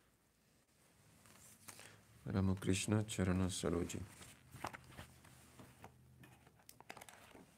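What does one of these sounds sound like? A harmonium plays a steady drone.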